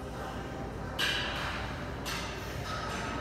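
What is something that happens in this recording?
Weight plates clink sharply.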